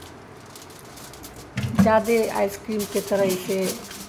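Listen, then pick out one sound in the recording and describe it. Aluminium foil crinkles and rustles as hands handle it.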